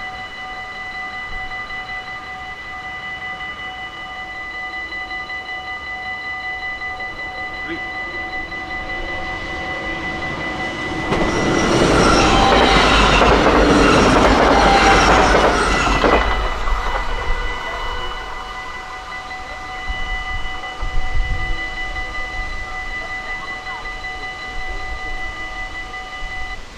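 A level crossing bell rings steadily.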